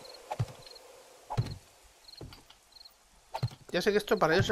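Footsteps thud heavily on a hard floor.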